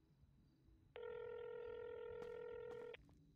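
A phone dialing tone sounds steadily through a small speaker.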